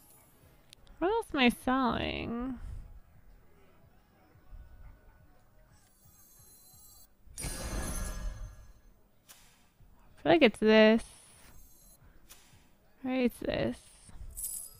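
A young woman laughs in high-pitched bursts close to a microphone.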